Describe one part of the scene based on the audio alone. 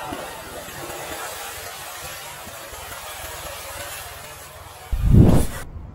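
Water splashes and sloshes in a pool.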